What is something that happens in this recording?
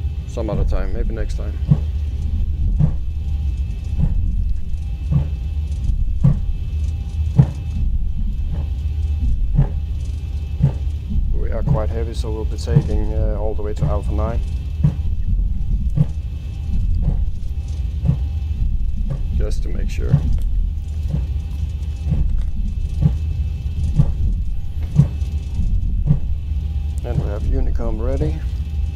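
Jet engines rumble low and steadily.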